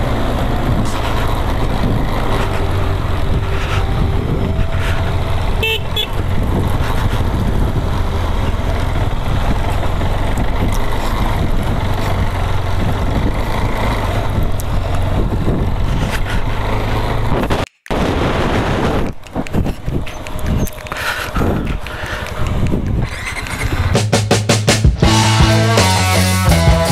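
Tyres crunch over a rocky dirt track.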